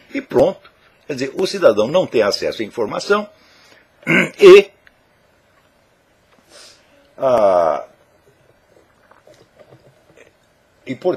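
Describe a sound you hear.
An elderly man speaks calmly and close to a microphone, pausing between phrases.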